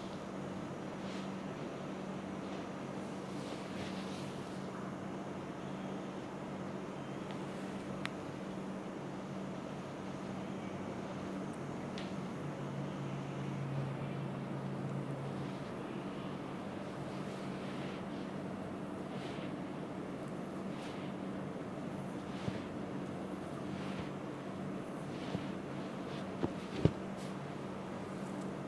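Hands rub and knead oiled skin with soft swishing strokes.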